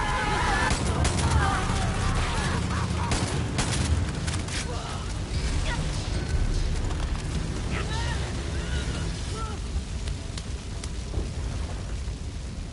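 Flames crackle and burn.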